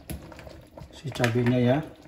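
Thick sauce pours onto food with a soft splatter.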